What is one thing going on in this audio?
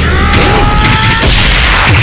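An energy blast roars with a whooshing burst.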